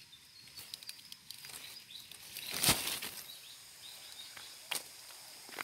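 Dry palm leaves rustle and crackle close by.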